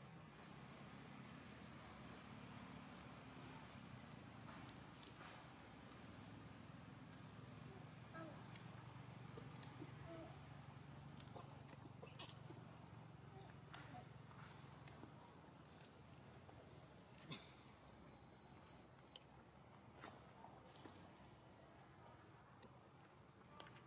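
A small monkey crunches and chews food.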